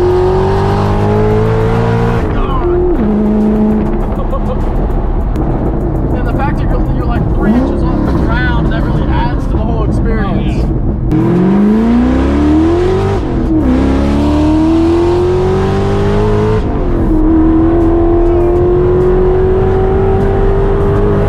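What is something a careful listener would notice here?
A loud car engine roars, rising in pitch as it revs and dropping at each gear change.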